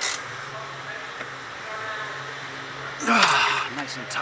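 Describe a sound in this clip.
Metal tools clink and scrape under a vehicle.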